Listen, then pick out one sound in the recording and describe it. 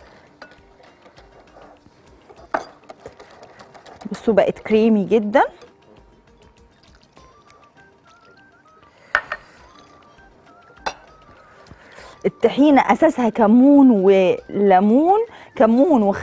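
A whisk clinks against a glass bowl.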